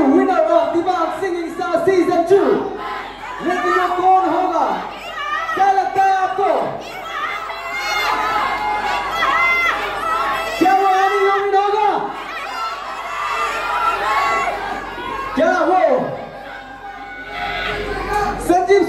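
A young man speaks with animation into a microphone over loudspeakers in a large echoing hall.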